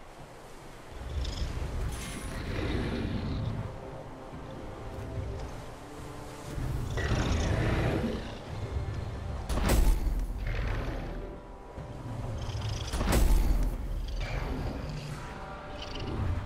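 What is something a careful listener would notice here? Wind rushes past as a dragon flies fast.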